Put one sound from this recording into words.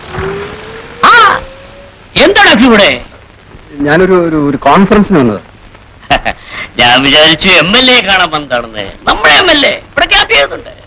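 An elderly man talks with animation, close by.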